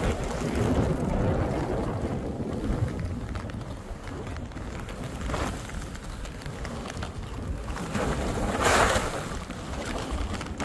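Skis hiss through deep powder snow.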